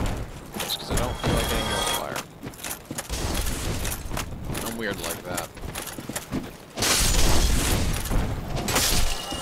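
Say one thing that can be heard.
A sword swishes through the air and strikes with a clang.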